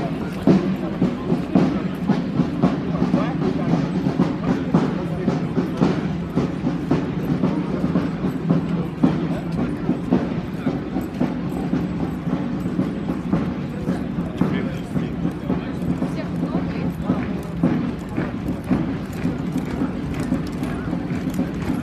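Boots of marching soldiers tramp in step on pavement outdoors.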